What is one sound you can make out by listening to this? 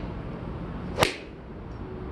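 A golf iron strikes a ball off a turf mat with a sharp crack.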